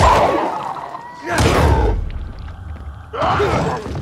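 A fiery explosion bursts with a roar.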